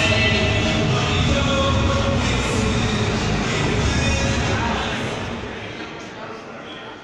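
A large crowd of men chants and shouts loudly, echoing.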